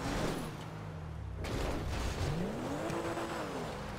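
A car lands hard with a loud thud.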